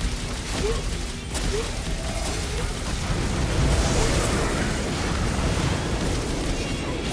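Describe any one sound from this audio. Sword blades slash and clang against a monster.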